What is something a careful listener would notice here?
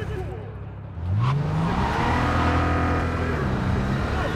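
A car engine revs up and hums steadily.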